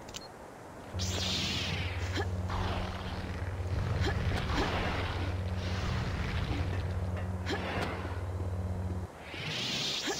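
A lightsaber whooshes as it swings.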